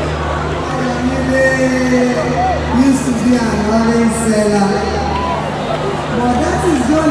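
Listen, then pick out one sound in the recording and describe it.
A woman sings through a microphone.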